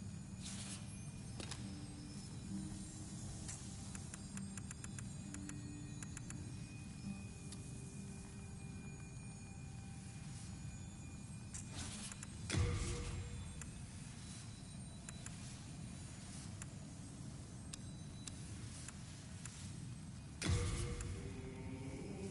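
Soft menu clicks tick as a cursor moves through a list.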